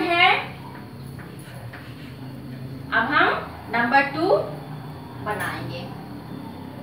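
A woman speaks clearly and with emphasis, close by.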